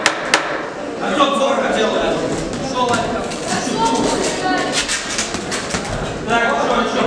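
Boxing gloves thud against each other in quick punches.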